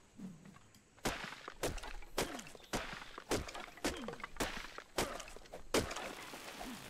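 A hatchet chops into a tree trunk with sharp, repeated thuds.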